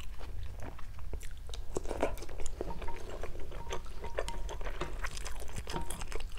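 A woman chews and slurps food close to a microphone.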